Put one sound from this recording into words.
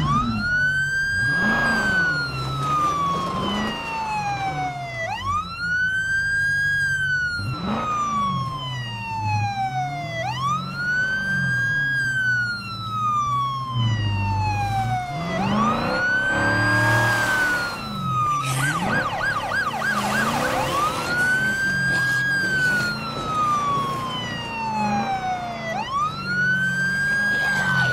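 A police siren wails steadily up and down, close by.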